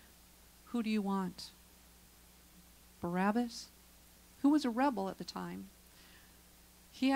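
A woman speaks with animation through a microphone, in bursts with pauses.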